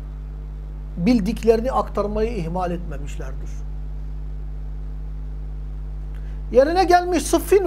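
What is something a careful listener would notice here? A middle-aged man speaks calmly into a close microphone, in short bursts.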